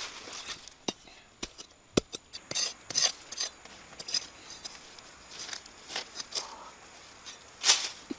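A metal tool scrapes and knocks against hard dirt.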